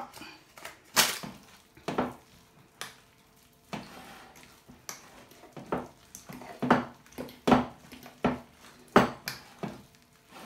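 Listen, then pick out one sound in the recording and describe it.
A metal utensil clinks and scrapes against a glass bowl while mashing potatoes.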